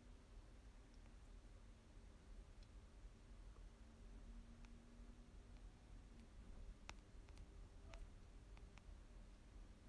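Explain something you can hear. Fingers rub and tap against a microphone.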